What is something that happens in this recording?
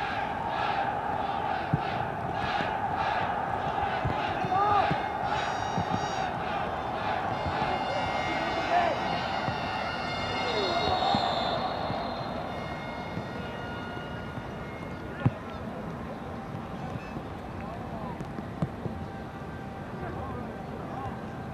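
A sparse crowd murmurs in a large open stadium.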